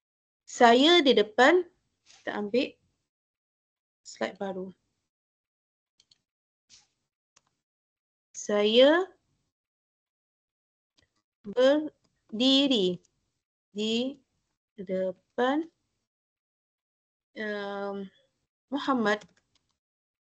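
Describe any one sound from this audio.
A woman speaks slowly and clearly over an online call, in short phrases with pauses.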